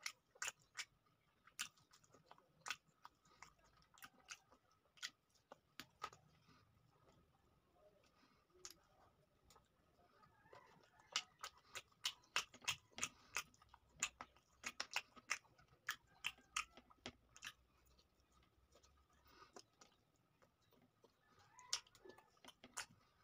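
Fingers squish and tear through soft food.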